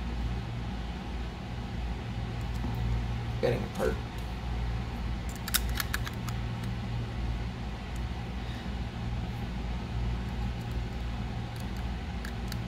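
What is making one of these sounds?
A small screwdriver turns tiny screws with faint scraping clicks.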